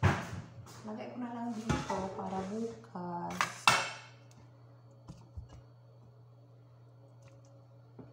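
Tongs scrape and clink on a plate.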